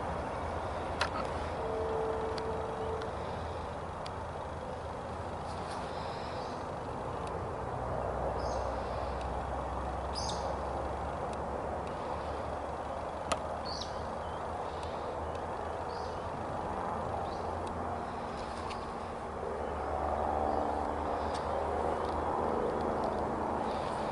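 A small rail vehicle's wheels roll along the track.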